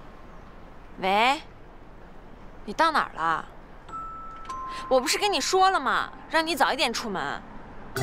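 A young woman speaks into a phone, loud and insistent.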